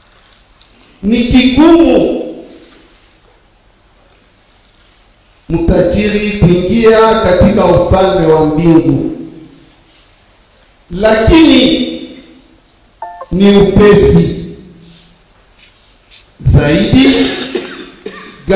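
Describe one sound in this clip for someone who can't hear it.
A man speaks slowly into a microphone in short phrases with long pauses, echoing in a large hall.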